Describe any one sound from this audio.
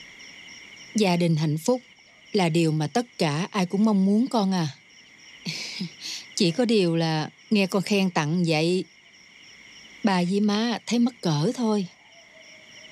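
A young woman speaks softly and earnestly, close by.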